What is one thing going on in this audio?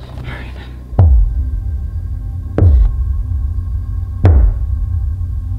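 A hand knocks loudly on a wooden door.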